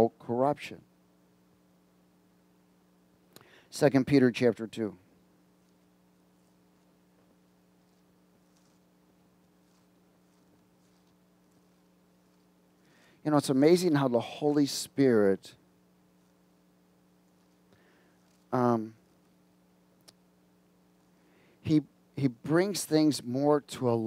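A middle-aged man speaks slowly and calmly through a headset microphone, with long pauses.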